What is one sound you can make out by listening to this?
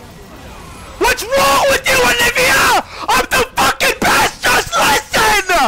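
A young man shouts excitedly into a close microphone.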